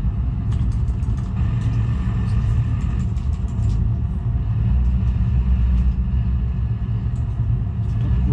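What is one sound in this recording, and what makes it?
A truck engine drones steadily at low pitch.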